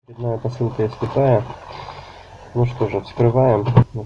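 A paper wrapper crinkles as hands crumple it.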